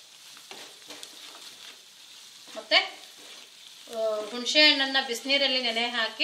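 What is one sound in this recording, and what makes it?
Food sizzles gently in a pan.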